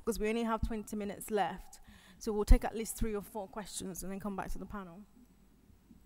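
A young woman speaks with animation into a microphone, heard through a loudspeaker in a large room.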